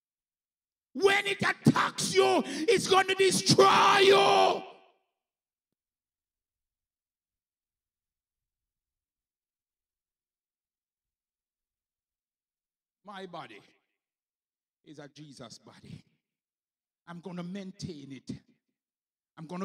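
A man preaches with animation into a microphone, heard through loudspeakers.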